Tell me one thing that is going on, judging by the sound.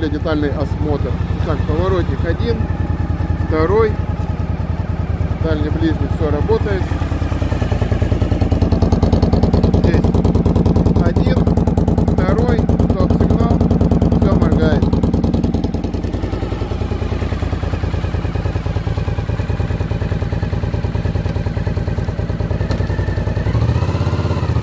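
A motorcycle engine idles with a steady, rapid throb.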